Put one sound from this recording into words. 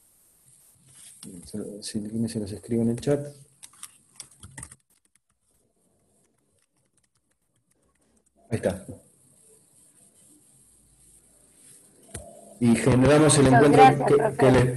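A middle-aged man speaks calmly over an online call, with pauses.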